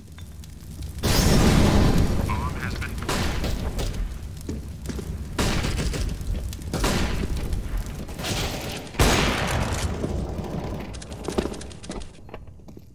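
Fire from an incendiary grenade roars and crackles.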